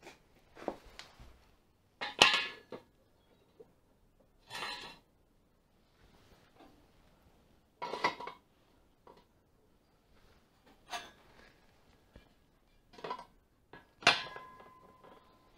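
A metal tube clanks on a concrete floor.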